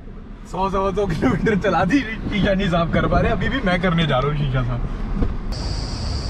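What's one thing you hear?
A man talks with animation close by, inside a car.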